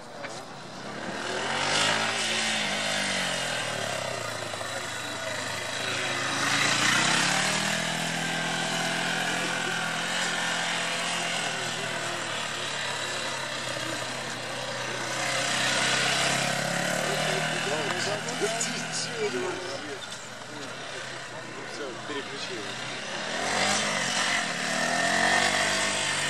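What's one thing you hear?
A motorcycle engine revs up and down.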